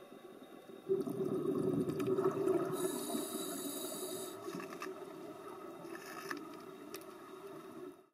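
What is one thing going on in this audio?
Scuba divers breathe out, and bubbles rush and gurgle up through the water.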